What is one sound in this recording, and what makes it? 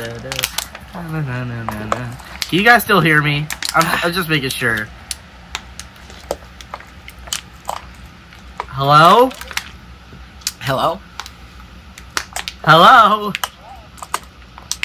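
A plastic water bottle crinkles in a hand.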